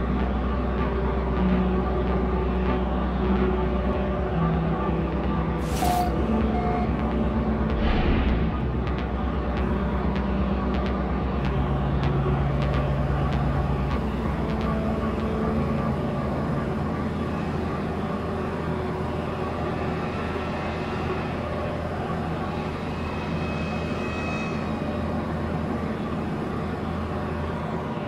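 A spaceship engine hums with a low, steady drone.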